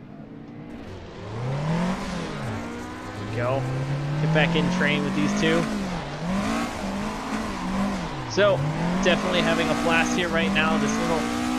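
A car engine revs up and down, rising and falling in pitch as gears change.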